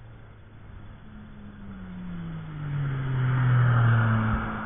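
A sports car engine roars louder as the car approaches at speed.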